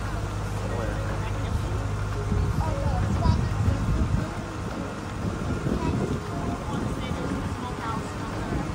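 Water laps gently against a shore.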